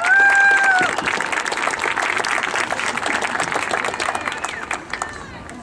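A distant crowd applauds and cheers.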